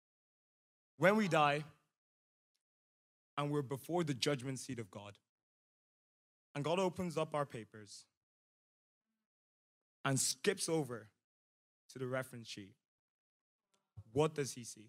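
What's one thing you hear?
A man speaks calmly and deliberately into a microphone, with long pauses.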